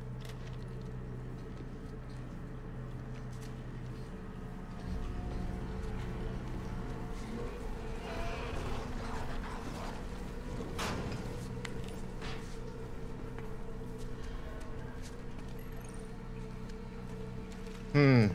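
Heavy footsteps clank on a metal grating.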